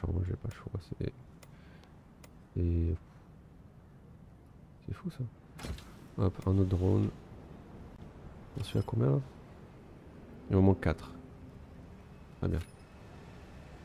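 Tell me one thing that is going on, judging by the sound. Short game interface clicks and tones sound as menus open and close.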